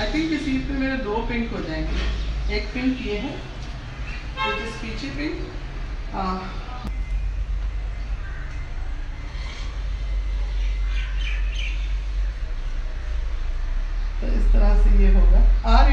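A woman talks casually, close by.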